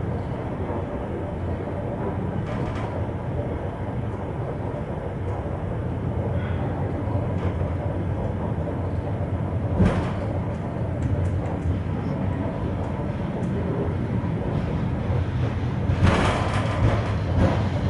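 A train carriage rumbles steadily along the tracks.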